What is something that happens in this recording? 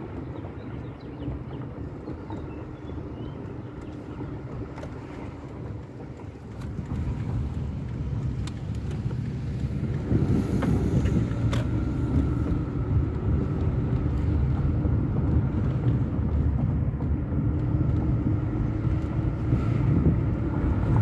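A car engine hums inside the cabin while driving slowly, growing louder as it speeds up.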